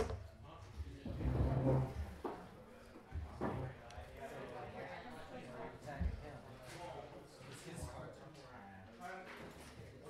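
Plastic game pieces click and slide on a table.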